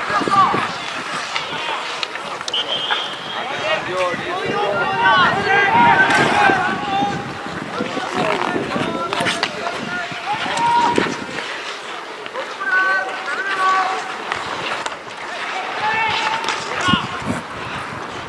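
Men shout to each other from a distance outdoors.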